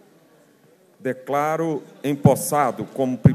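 A young woman speaks clearly into a microphone, heard through loudspeakers.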